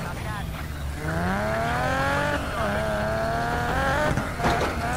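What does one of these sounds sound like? A sports car engine revs up and roars as the car speeds along.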